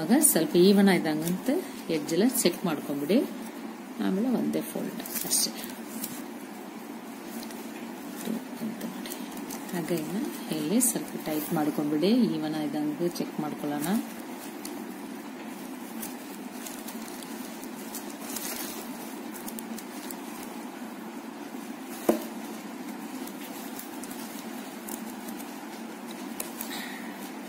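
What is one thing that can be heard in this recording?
Stiff plastic strands rustle and click softly as they are woven by hand.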